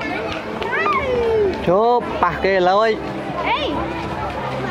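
A child shouts loudly close by.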